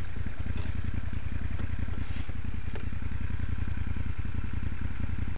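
A transverse V-twin motorcycle idles close by with a lumpy, even beat.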